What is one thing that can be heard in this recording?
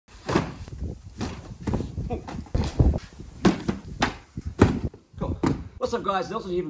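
Cardboard boxes thump and scrape as they are set down.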